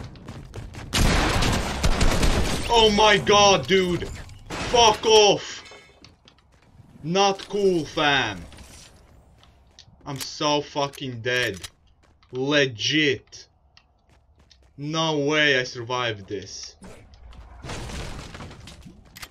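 Gunfire bursts out in a game.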